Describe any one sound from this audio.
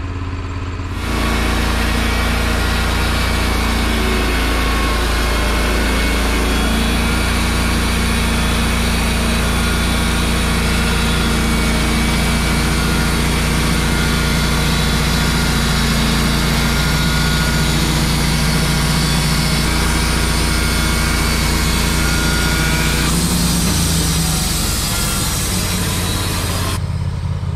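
A band saw whines as it cuts through a log.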